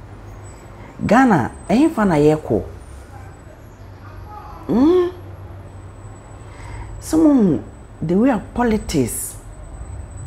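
A young man speaks close to a microphone in short, expressive bursts with pauses.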